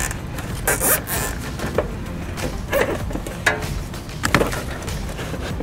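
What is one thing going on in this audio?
Plastic cable ties click and rasp as they are pulled tight.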